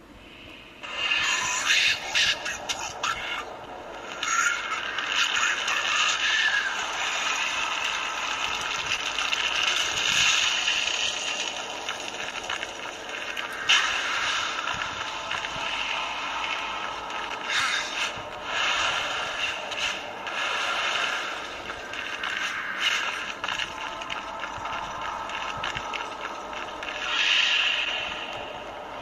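Game music and action sound effects play from a small phone speaker.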